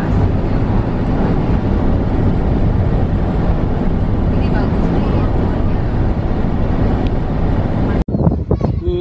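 A motor rumbles steadily while driving along a road.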